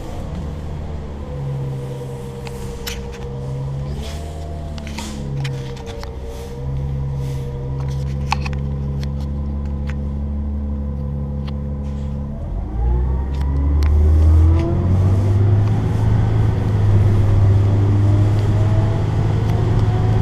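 A bus engine hums and whines steadily, rising in pitch as the bus speeds up.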